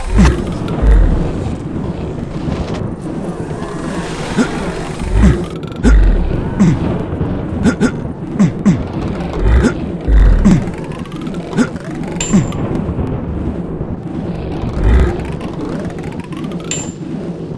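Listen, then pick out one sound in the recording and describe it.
Arcade game sound effects thud and whoosh as characters run.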